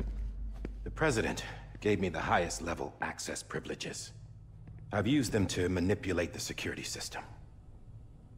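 A man speaks calmly and in a low voice.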